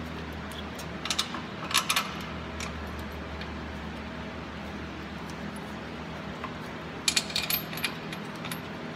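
Metal parts clink and rattle.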